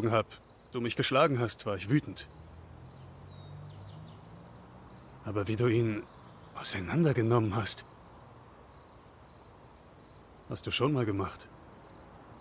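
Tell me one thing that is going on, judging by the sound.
A young man speaks calmly into a close microphone, in short bursts.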